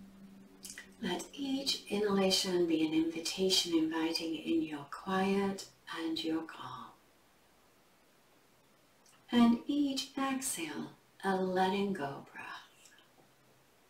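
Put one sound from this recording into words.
A woman speaks calmly and softly close to a microphone.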